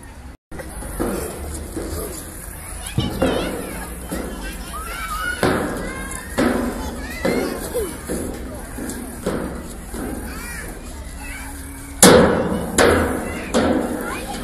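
Sneakers thump and squeak on a metal slide.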